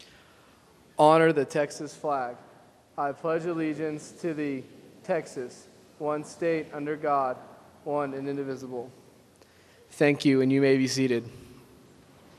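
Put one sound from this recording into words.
A man speaks into a microphone, heard over loudspeakers in a large echoing hall.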